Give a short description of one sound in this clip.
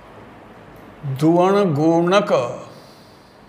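An elderly man speaks aloud in a calm, drawn-out tone nearby.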